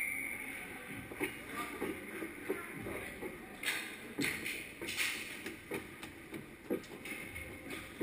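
Ice skates scrape and crunch on ice in a large echoing rink.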